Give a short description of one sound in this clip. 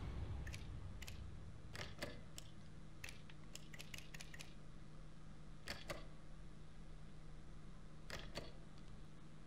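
Menu clicks sound in short, sharp ticks.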